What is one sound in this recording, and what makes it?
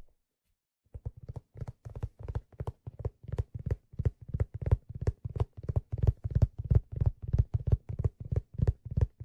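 Fingers tap rapidly on a hat close to a microphone.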